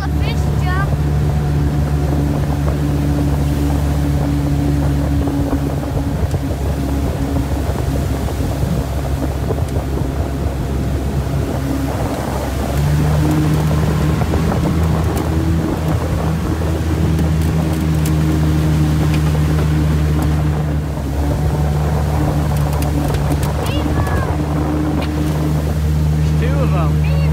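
Water rushes and splashes past the boat hull.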